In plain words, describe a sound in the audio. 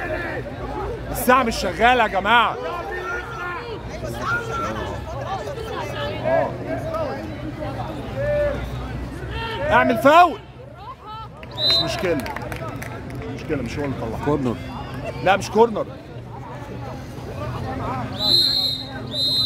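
A large crowd chatters steadily outdoors.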